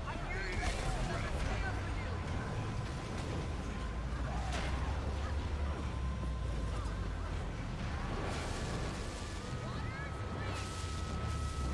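Magic blasts and weapon hits clash and crackle in a hectic battle.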